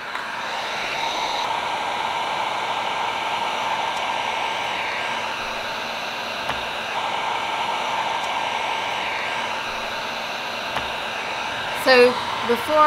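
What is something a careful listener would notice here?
A heat gun blows with a steady whooshing roar.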